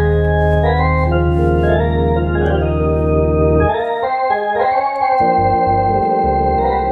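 An electronic organ plays sustained chords with a deep bass line.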